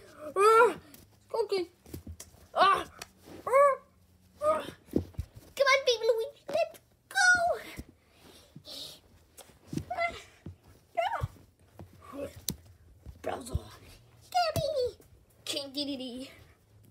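Soft plush toys rustle and bump as a hand pushes through them.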